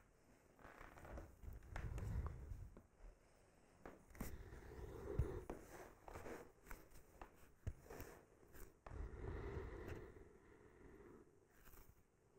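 A woman breathes out deeply and slowly.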